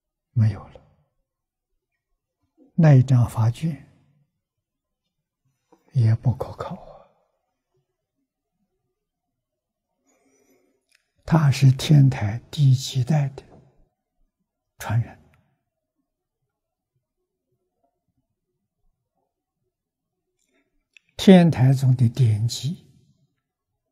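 An elderly man speaks calmly into a microphone in short, spaced phrases.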